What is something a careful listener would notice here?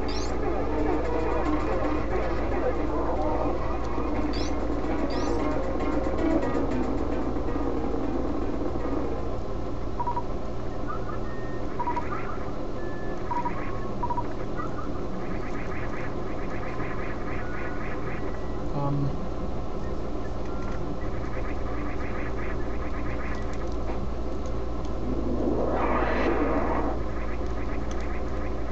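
Retro video game music plays steadily.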